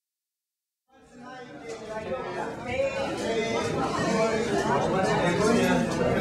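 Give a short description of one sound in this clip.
An audience cheers and whoops.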